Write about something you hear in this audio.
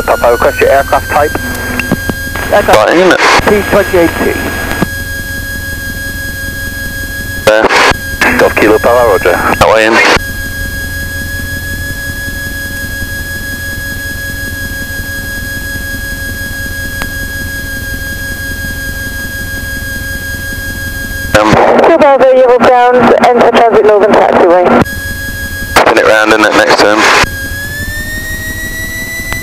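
A small plane's engine drones steadily inside the cabin, then rises in pitch near the end.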